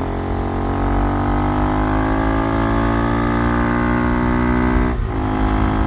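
A motorcycle engine roars steadily, rising in pitch, then drops sharply as it shifts gear.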